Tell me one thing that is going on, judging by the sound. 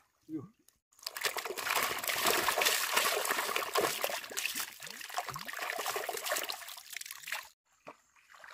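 Fish thrash and splash loudly in a basin of water.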